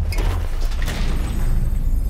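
A heavy metal door handle clunks.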